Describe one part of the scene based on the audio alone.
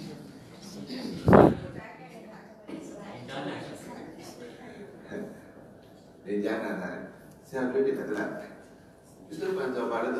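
A middle-aged man speaks calmly into a microphone, heard through a loudspeaker in an echoing room.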